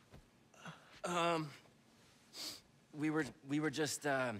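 A young man answers nervously.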